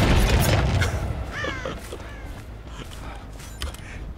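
A man laughs loudly close to a microphone.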